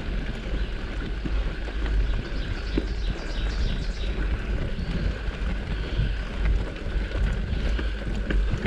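Tyres roll and crunch over a dirt trail.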